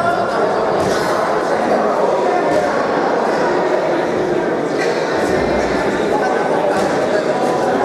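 A crowd of spectators chatters and shouts throughout in an echoing hall.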